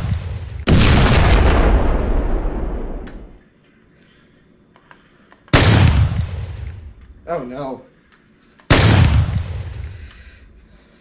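A shotgun fires loud blasts, each rumbling and slowly fading.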